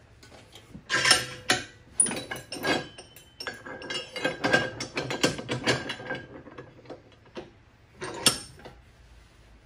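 A metal rod clanks and scrapes against a vise.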